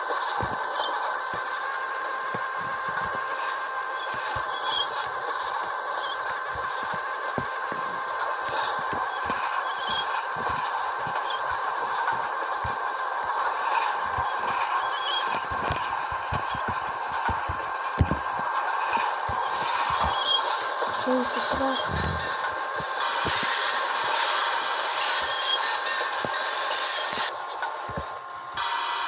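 A diesel locomotive engine rumbles steadily as a train rolls along.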